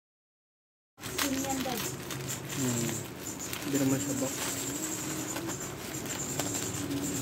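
A plastic package rustles and crinkles as it is handled.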